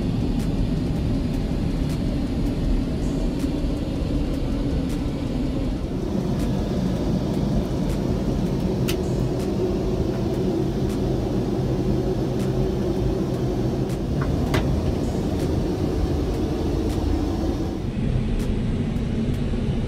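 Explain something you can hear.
A steady low roar of jet engines hums throughout.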